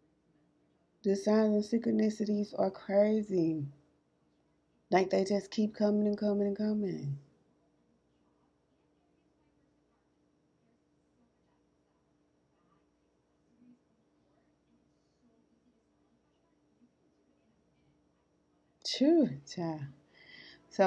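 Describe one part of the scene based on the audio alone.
A woman speaks calmly and close by, in short bursts with long pauses.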